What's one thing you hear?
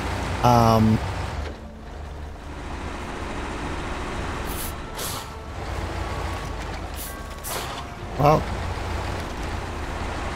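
Branches snap and crack as a truck pushes through trees.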